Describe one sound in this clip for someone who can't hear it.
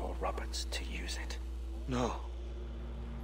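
A wounded man speaks weakly and strained.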